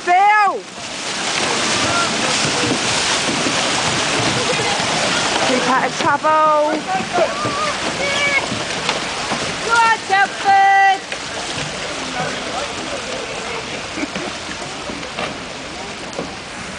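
Paddles splash in the water.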